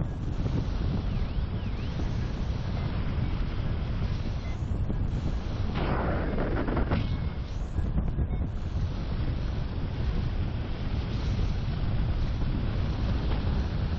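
Strong wind rushes and buffets steadily, high up in open air.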